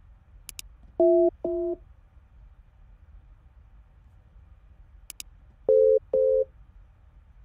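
Phone keypad tones beep briefly as numbers are dialed.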